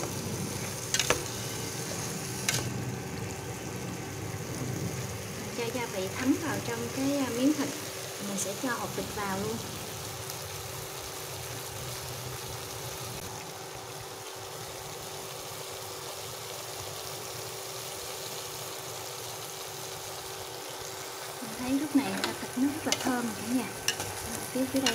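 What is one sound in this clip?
Chopsticks clink against a metal pot.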